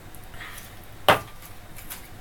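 A glass is set down with a knock.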